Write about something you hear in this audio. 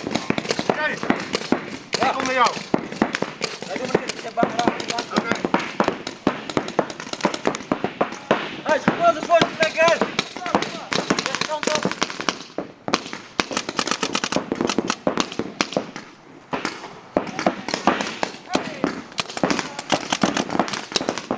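Paintball guns fire in rapid pops nearby and in the distance.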